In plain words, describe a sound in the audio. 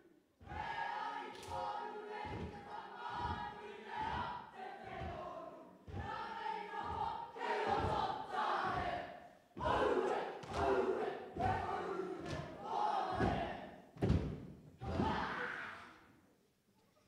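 A group of young students chant loudly in unison in a large echoing hall.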